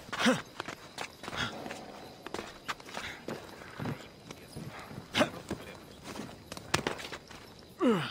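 Hands scrape and thud against rock while climbing.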